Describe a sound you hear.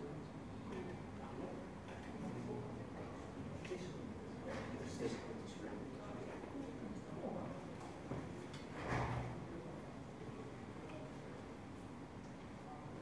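A man speaks quietly into a microphone in an echoing room.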